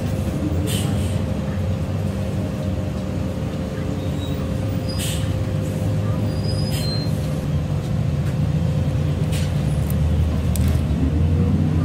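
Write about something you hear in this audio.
The bus body rattles and clicks as it drives.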